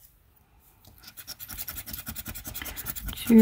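A plastic scraper scratches rapidly at a card.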